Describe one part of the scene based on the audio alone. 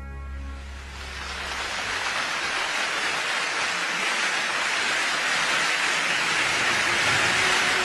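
A large crowd applauds and cheers, the noise swelling steadily.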